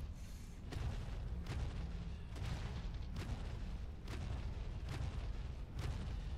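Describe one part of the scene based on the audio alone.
Molten lava rumbles low and steadily.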